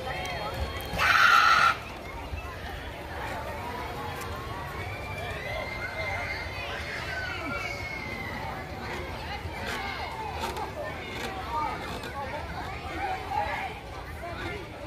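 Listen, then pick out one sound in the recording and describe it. A crowd of people chatter at a distance outdoors.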